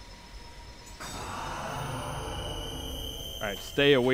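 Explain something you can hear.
A magic spell crackles and hums.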